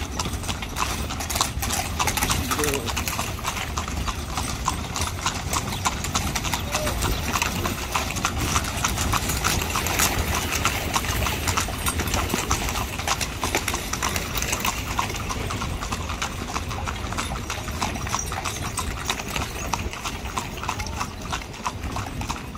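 A horse's hooves clop on an asphalt road.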